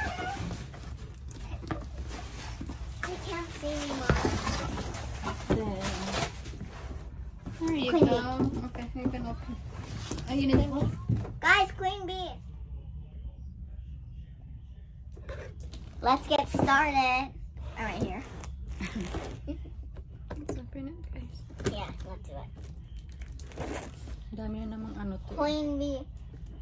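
A young girl speaks with excitement close by.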